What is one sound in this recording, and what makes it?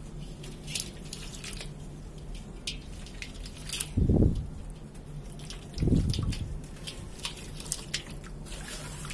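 Dry sand pours and trickles into a metal basin.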